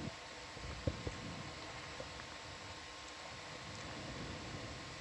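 Deep water hisses and murmurs steadily all around underwater.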